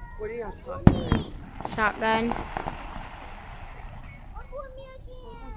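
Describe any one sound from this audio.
Fireworks crackle and fizzle after a burst.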